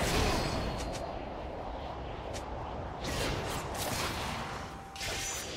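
Game combat effects clash and burst in quick succession.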